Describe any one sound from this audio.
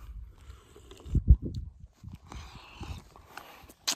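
A man gulps a drink noisily.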